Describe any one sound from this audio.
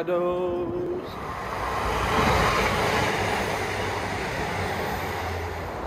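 A train rushes past nearby with a steady roar.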